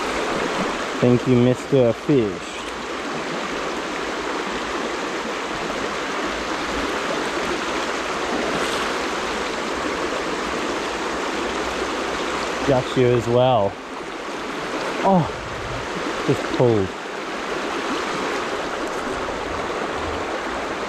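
A shallow river rushes and burbles steadily over stones nearby.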